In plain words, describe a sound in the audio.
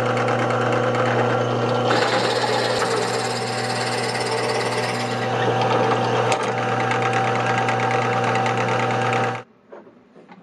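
A drill press whines and bores loudly through wood.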